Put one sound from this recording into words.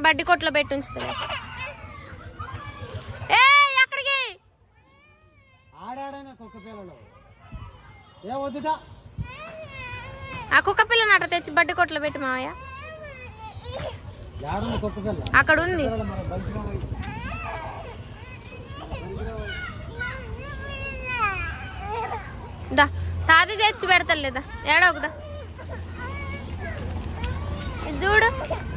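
Young children talk and call out excitedly.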